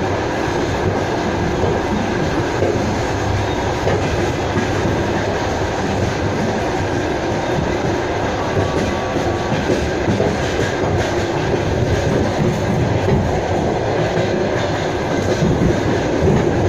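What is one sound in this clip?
A passing freight train roars close by the window.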